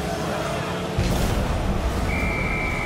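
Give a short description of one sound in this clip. A loud explosion booms as a goal is scored.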